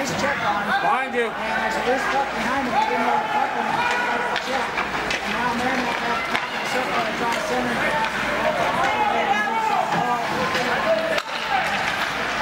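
Spectators talk and call out close by in an echoing rink.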